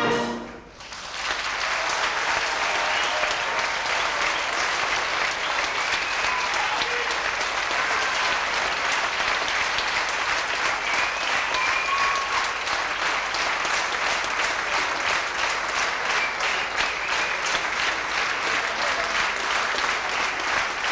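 An audience claps steadily in a large hall.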